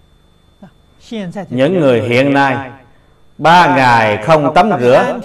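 An elderly man speaks calmly and slowly into a close microphone.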